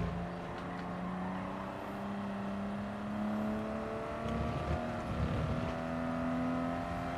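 A race car engine drones steadily, its pitch slowly rising and dipping as it shifts.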